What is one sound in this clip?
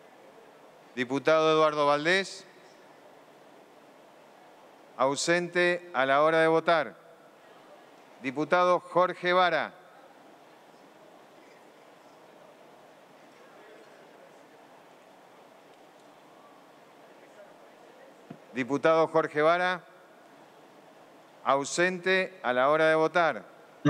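An older man speaks calmly into a microphone in short phrases, in a large echoing hall.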